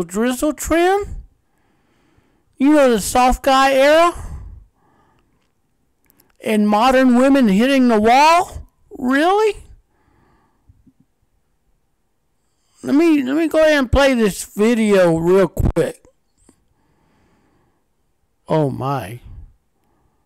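A young woman talks with feeling, close to a microphone, in bursts with pauses.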